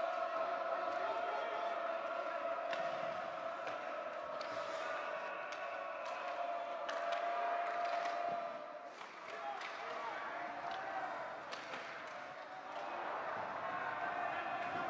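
Spectators murmur and chatter in a large echoing rink.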